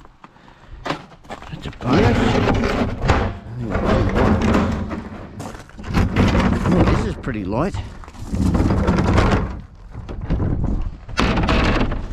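A plastic bin lid thuds open and shut.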